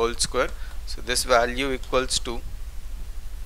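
A man speaks calmly and clearly, as if explaining, close by.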